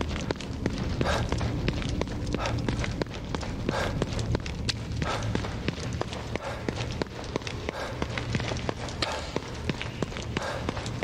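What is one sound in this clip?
Footsteps thud quickly on a hard floor as a man runs.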